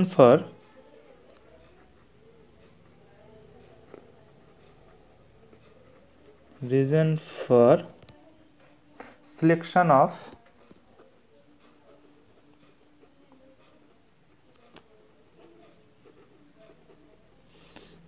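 A marker pen squeaks softly across paper.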